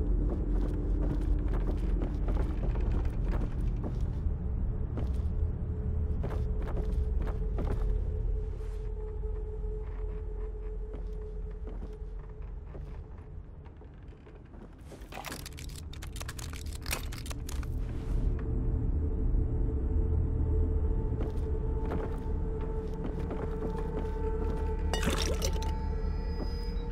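Footsteps thud slowly across a hard floor.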